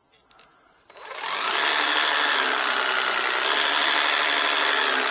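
A power tool's motor runs with a loud, steady whir.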